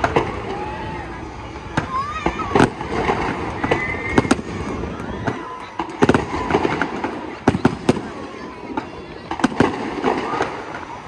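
Fireworks boom and bang as they burst in the air outdoors.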